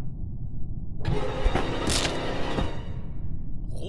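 A loud, harsh slashing sound bursts out and quickly dies away.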